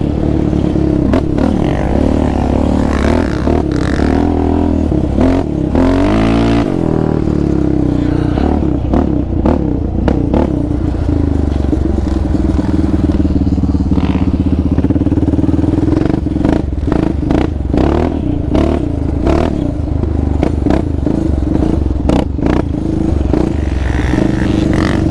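A quad bike engine roars and revs up and down close by.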